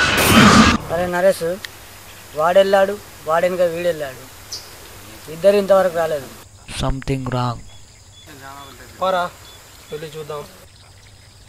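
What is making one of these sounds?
A young man speaks quietly nearby.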